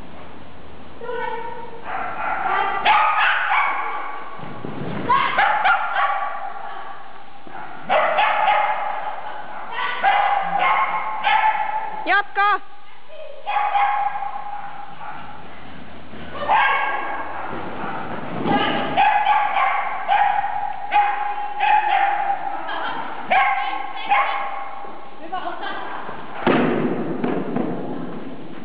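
A young woman calls out commands to a dog with animation, in a large echoing hall.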